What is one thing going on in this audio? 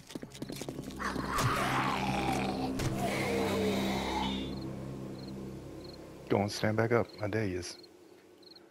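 Zombies groan and snarl loudly.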